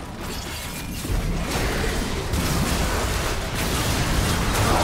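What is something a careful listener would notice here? Video game spells crackle and boom in a busy fight.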